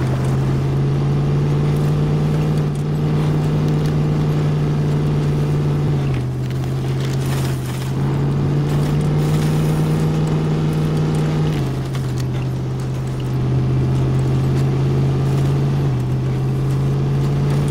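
A truck engine drones steadily, shifting pitch as it climbs.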